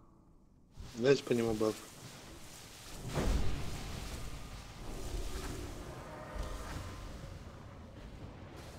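Spell effects whoosh and crackle during a battle.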